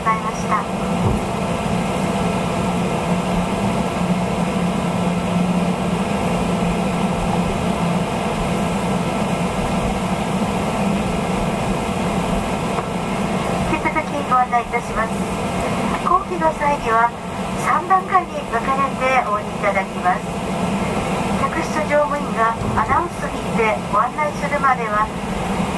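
An aircraft's jet engines hum steadily.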